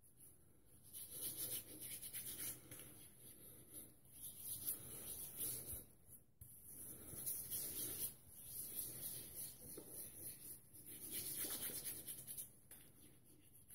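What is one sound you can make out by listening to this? Fingers rub shaving lather over stubble with soft, wet squishing and scratching.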